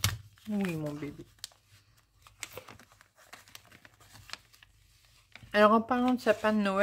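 Paper rustles and crinkles softly as hands handle it.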